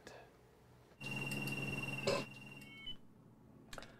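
A phone handset beeps with a steady tone.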